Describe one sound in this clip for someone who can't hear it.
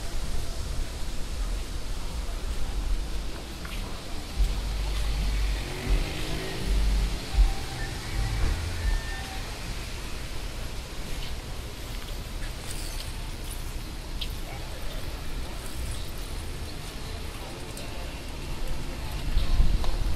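Wind rumbles outdoors in gusts.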